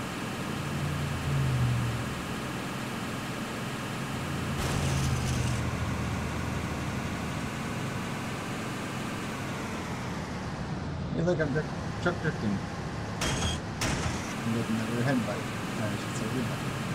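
A truck engine hums steadily in a game.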